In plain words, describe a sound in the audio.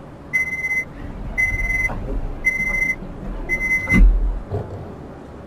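Train doors slide and thud shut.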